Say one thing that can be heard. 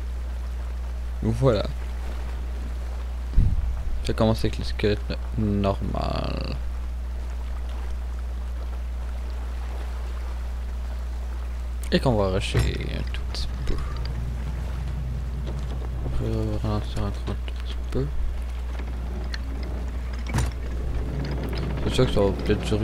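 Waves lap against a wooden ship's hull.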